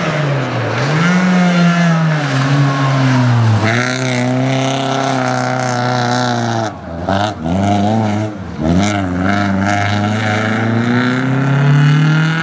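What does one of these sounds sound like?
A rally car engine roars loudly close by, revving up and down.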